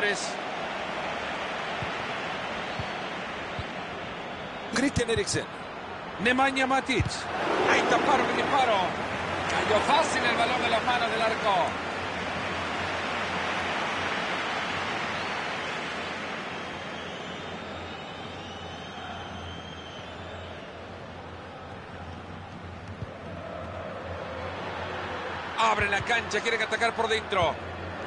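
A large stadium crowd murmurs and roars steadily, swelling and easing.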